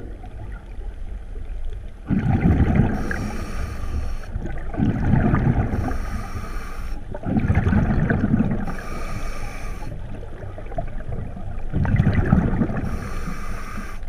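Water rumbles and swirls in muffled surges, heard from underwater.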